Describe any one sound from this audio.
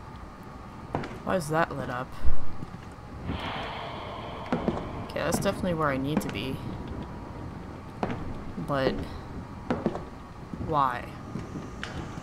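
A young woman speaks quietly into a close microphone.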